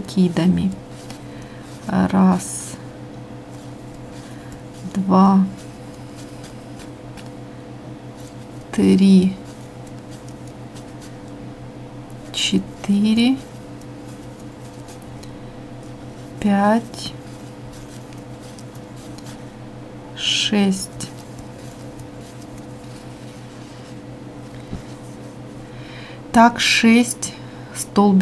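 A crochet hook softly pulls through yarn.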